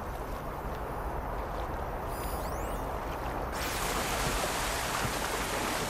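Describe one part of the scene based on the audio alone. A bowstring creaks as it is drawn.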